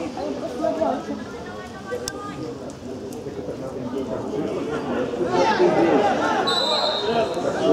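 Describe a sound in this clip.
Football players shout to each other across an outdoor pitch.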